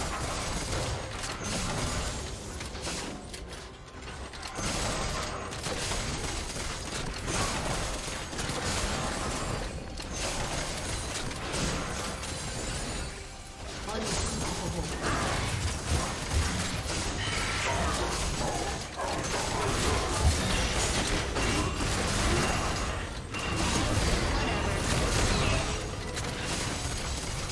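Game combat effects clash, whoosh and blast.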